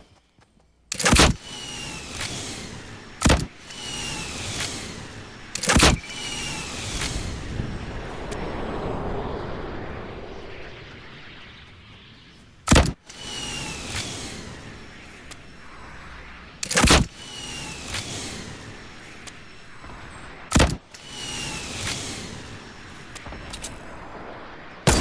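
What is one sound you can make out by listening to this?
A rocket launcher fires with loud, sharp blasts, again and again.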